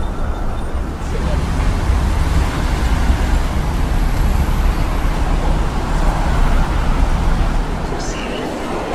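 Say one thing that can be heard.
City traffic hums and whooshes past outdoors.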